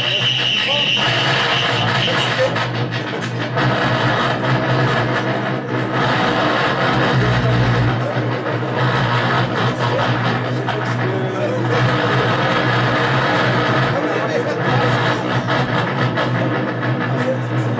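A band plays loud live music.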